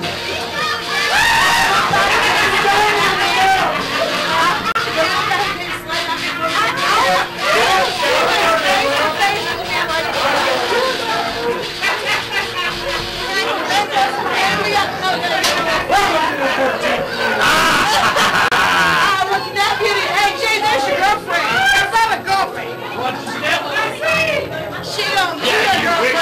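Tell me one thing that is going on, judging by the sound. Several men and women talk over one another close by.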